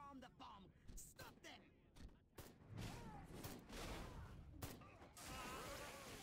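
A blaster weapon zaps and crackles in quick bursts.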